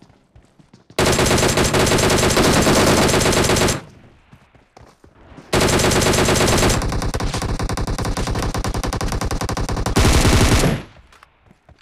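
Automatic gunfire rattles in long, loud, rapid bursts.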